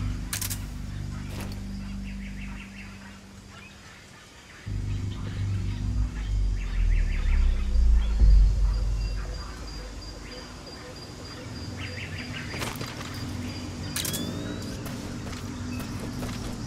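A soldier crawls through dry grass with a soft rustling.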